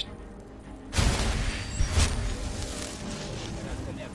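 A magic spell crackles and bursts with a loud rush.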